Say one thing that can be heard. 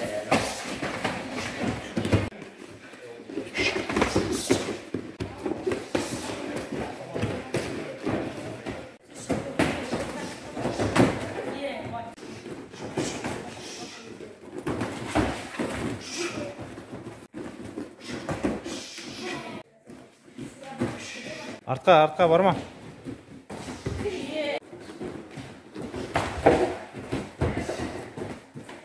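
Feet thump and shuffle on a padded mat.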